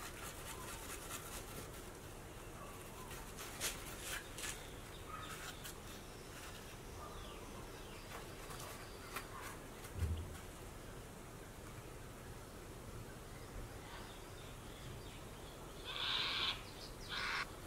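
A sharpening stone scrapes against a metal blade in short strokes.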